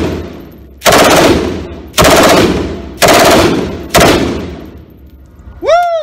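A machine gun fires short, very loud bursts indoors, echoing off the walls.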